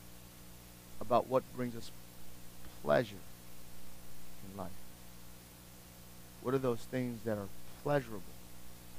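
A man speaks slowly through a microphone, pausing between phrases.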